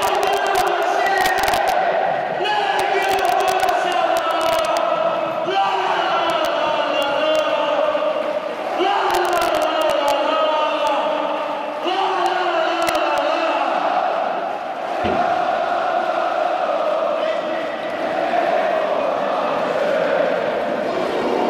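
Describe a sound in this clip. A huge stadium crowd sings and chants loudly in unison, echoing around the stands.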